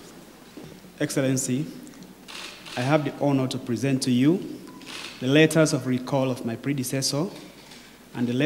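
A man speaks clearly and formally into a nearby microphone.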